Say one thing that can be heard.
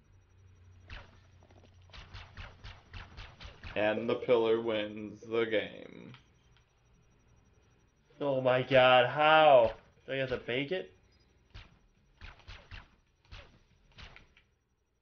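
A laser gun fires in quick shots.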